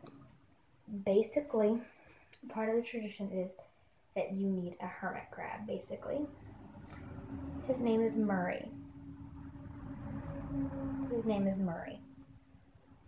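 A young girl talks casually, close to the microphone.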